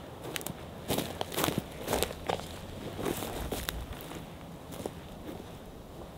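Footsteps crunch on dry forest ground.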